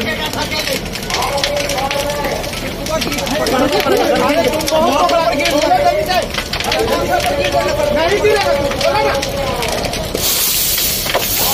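A large fire roars and crackles loudly.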